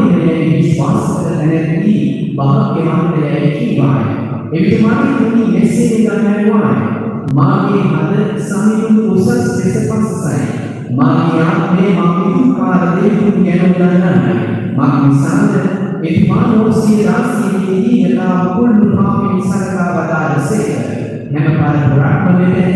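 A man speaks steadily through a loudspeaker in a large echoing hall.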